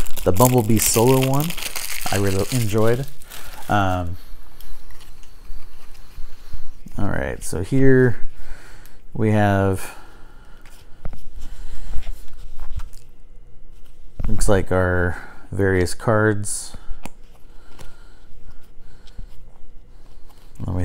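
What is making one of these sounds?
Small plastic parts click and rattle in a man's hands.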